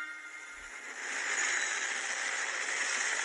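A train rushes past loudly on its tracks.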